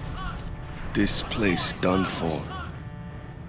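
A man speaks firmly, up close.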